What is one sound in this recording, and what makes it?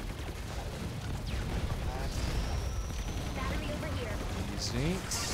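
Rapid gunfire and explosions crackle from a video game.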